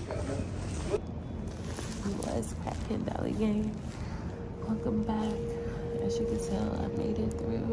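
A young woman talks softly and casually close to the microphone.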